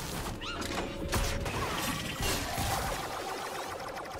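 Game combat sounds whoosh, zap and clash in a busy fight.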